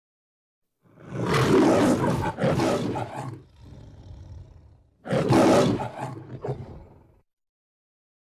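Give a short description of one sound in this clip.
A lion roars loudly twice.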